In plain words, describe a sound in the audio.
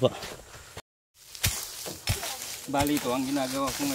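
A hoe scrapes and chops the leaf-covered ground.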